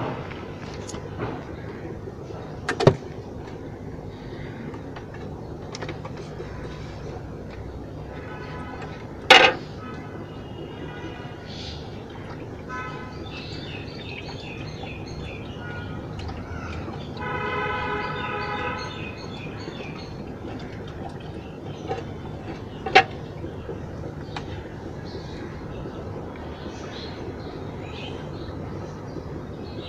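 Water bubbles and hums steadily in an aquarium filter.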